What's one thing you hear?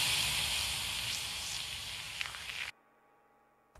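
A drum kit plays a loud beat with crashing cymbals, then stops abruptly.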